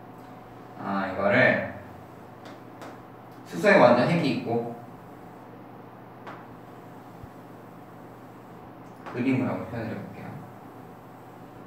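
A young man speaks calmly, pausing between phrases.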